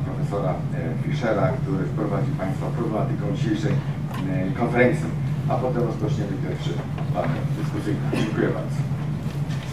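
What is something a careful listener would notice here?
An elderly man speaks calmly through a microphone in a room with some echo.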